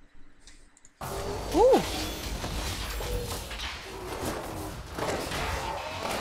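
Fantasy game battle effects crash, whoosh and clash loudly.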